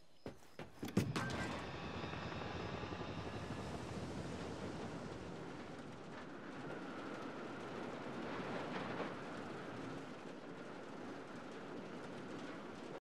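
A helicopter's engine and rotor roar steadily.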